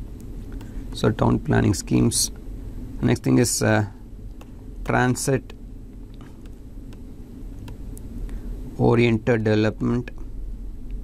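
A man speaks calmly into a close microphone, in short bursts.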